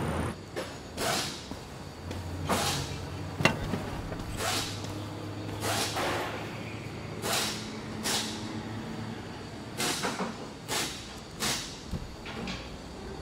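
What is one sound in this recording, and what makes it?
Metal tools clank and knock against an engine.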